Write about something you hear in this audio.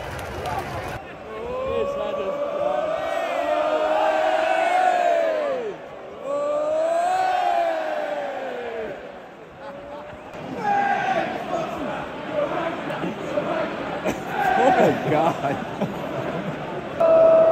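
A large stadium crowd sings a chant together.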